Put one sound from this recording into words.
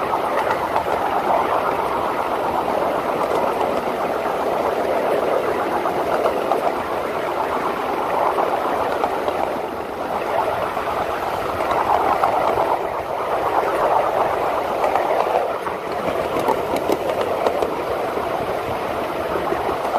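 A small steam locomotive chuffs steadily along a track.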